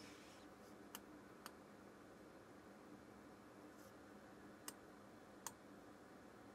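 A knob on a device clicks as it is turned.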